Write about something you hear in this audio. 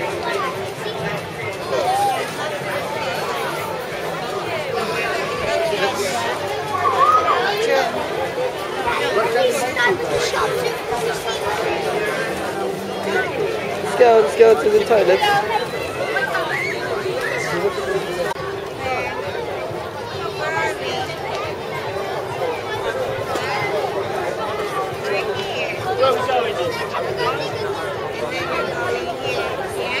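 A crowd chatters all around outdoors.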